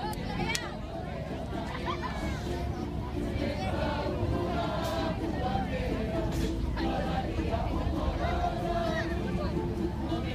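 A crowd of men and women chant loudly together outdoors.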